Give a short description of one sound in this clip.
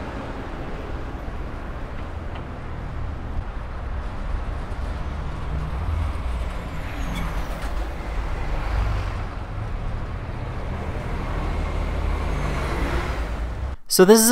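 Wind rushes steadily past a fast-moving bicycle.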